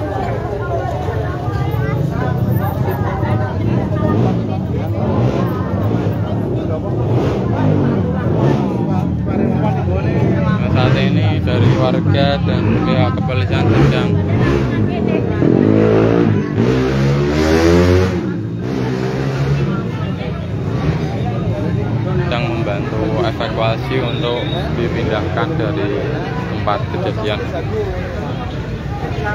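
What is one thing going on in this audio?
A crowd of men talk and shout excitedly nearby, outdoors.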